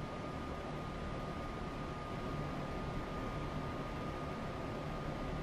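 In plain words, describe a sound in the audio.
A train's engine hums and rumbles steadily.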